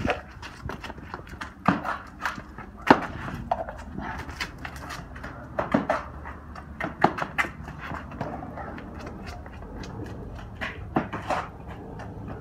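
Sneakers slap and scuff on concrete as a man runs.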